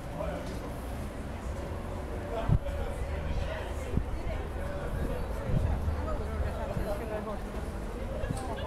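Footsteps tap on a paved walkway.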